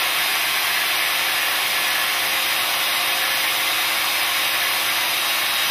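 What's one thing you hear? An air-powered pipe cutting machine whines and hisses steadily as it cuts.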